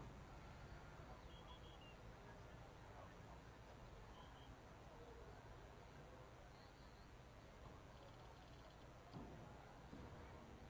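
Distant voices of young players call out faintly across an open outdoor field.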